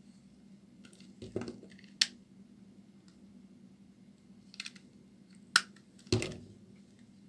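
A knife blade scrapes and cuts into a bar of soap with crisp cracks.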